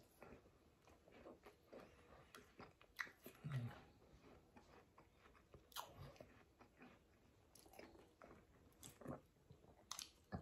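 A man chews food with his mouth full, close by.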